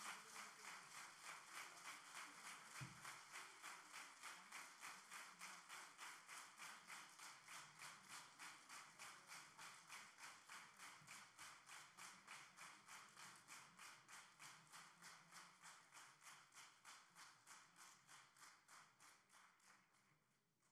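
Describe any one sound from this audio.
Dancers stamp their feet in a fast, steady rhythm on a stage, slowly fading.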